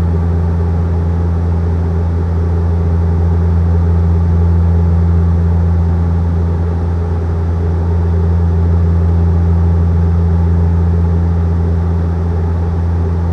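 A jet airliner's engines drone steadily in the cabin.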